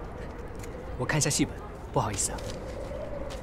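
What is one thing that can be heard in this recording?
A young man speaks hesitantly nearby.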